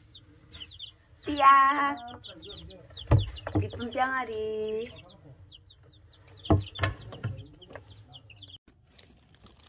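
Chicks peep rapidly and constantly, close by.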